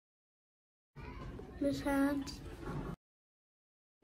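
A young girl speaks playfully close to a microphone.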